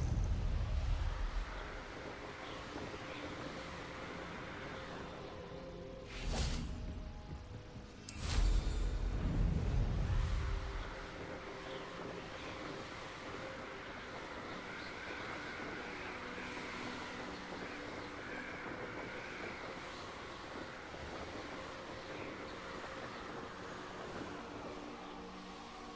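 Wind rushes steadily past during a flight.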